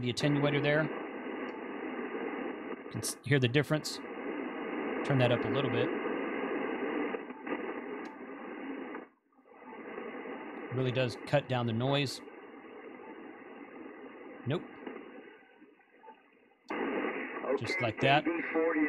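Static hisses steadily from a radio receiver.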